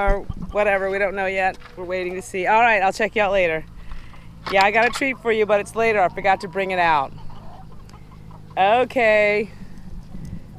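Hens cluck and squawk nearby.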